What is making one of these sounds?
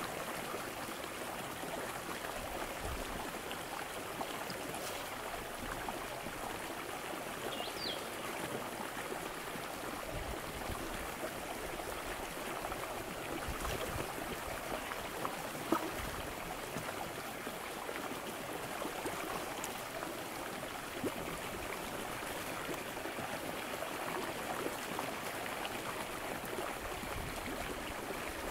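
A stream flows gently.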